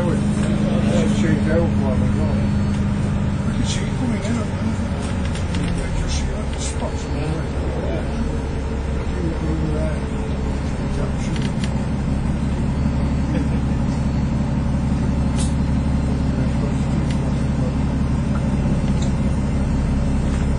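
A bus engine hums steadily from inside the vehicle.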